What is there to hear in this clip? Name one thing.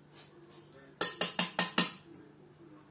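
A spoon clinks rapidly against a bowl.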